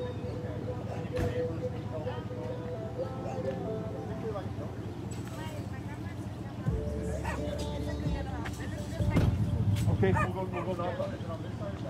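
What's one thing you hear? A woman talks outdoors nearby.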